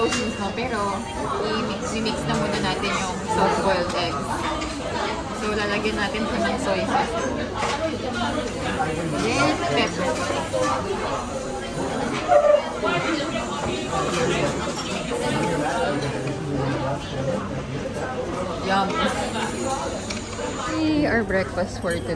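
A busy room hums with the chatter of many people.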